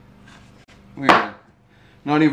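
A wooden block knocks down onto a bench.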